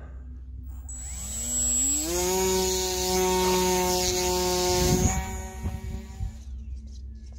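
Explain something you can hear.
A model plane's electric motor revs up to a steady high whine.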